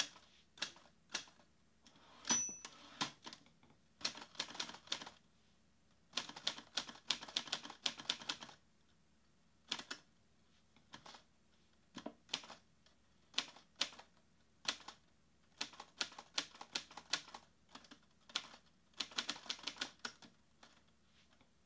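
Fingers tap quickly on a laptop keyboard in bursts, close by.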